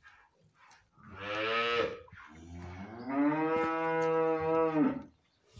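A calf moos loudly, twice.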